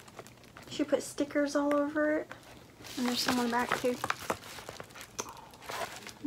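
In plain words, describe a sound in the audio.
A padded paper envelope crinkles as it is handled.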